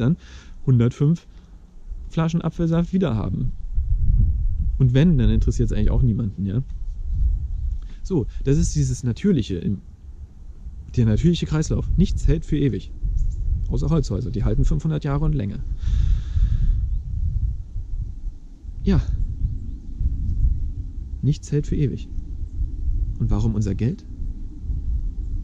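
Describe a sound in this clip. Wind rumbles low against a microphone outdoors.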